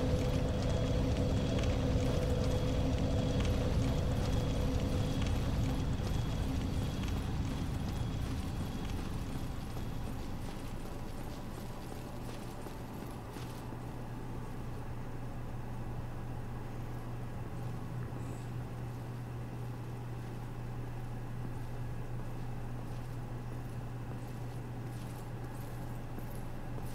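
Armoured footsteps clank steadily as a knight runs.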